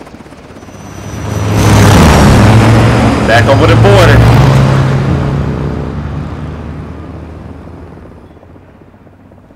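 A helicopter roars overhead and fades into the distance.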